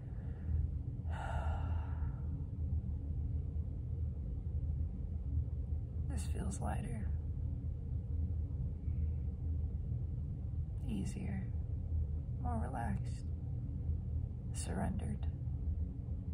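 A young woman speaks softly with pauses, close to the microphone.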